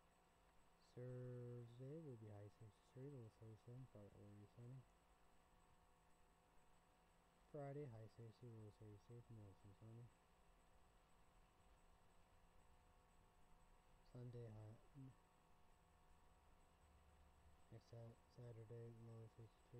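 A young man speaks calmly and close to the microphone, in short bursts with pauses.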